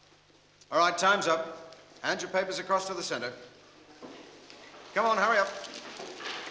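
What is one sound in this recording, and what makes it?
A man speaks loudly and sternly in an echoing room.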